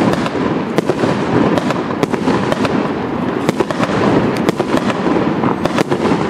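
Firework bursts crackle overhead.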